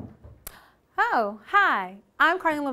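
A young woman exclaims cheerfully close by.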